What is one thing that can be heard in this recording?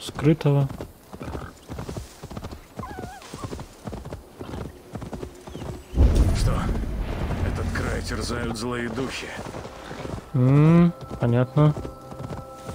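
A horse gallops, its hooves thudding on soft ground.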